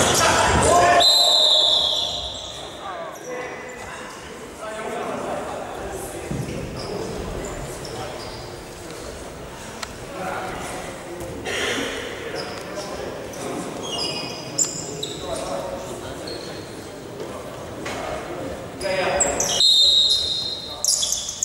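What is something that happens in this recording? A referee's whistle blows shrilly.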